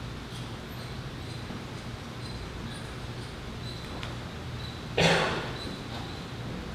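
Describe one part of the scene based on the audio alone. An elderly man speaks softly through a microphone in a large echoing room.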